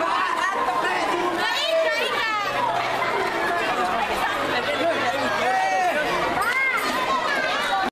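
A crowd of young people chatter and shout outdoors.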